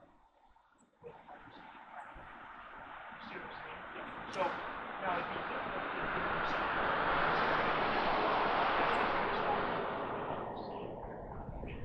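A car drives past close by, rising and then fading.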